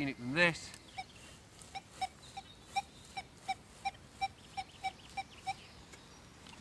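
A metal detector gives a string of short, even electronic beeps.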